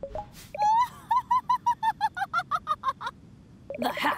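Short electronic blips chirp rapidly in a quick, even rhythm.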